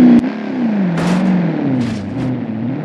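A car thumps loudly over a bump in the road.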